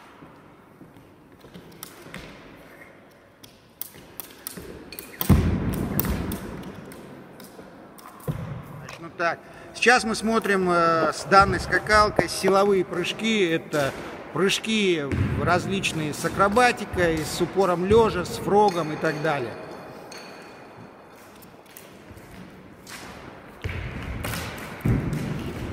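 A jump rope slaps the floor in a quick rhythm.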